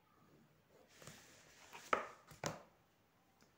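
A plastic ruler is lifted and knocks against paper.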